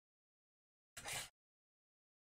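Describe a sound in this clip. A cardboard box is torn open with a soft scrape.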